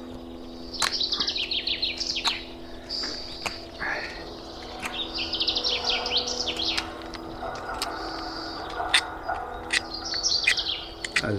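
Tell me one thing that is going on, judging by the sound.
A knife shaves wood with short scraping strokes.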